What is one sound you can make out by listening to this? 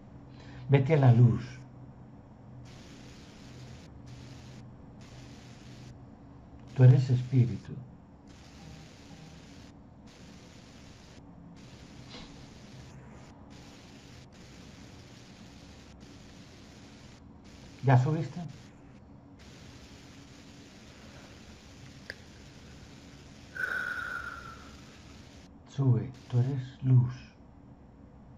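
An older man speaks in short loud bursts over an online call.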